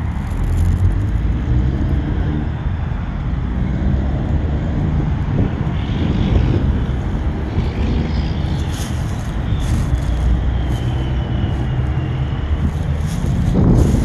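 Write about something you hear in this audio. A man and a woman talk quietly at a distance.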